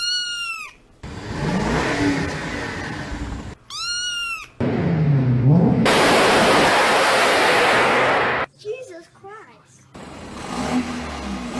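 A car engine revs loudly through its exhaust.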